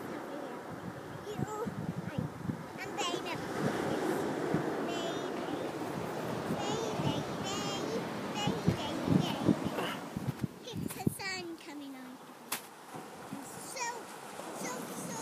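Young girls chatter with animation close by, outdoors.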